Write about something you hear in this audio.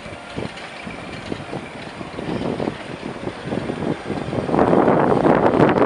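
Train wheels click and clatter over the rails, growing louder.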